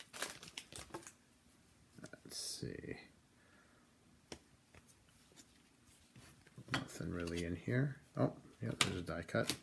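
Trading cards rustle and flick as they are shuffled by hand.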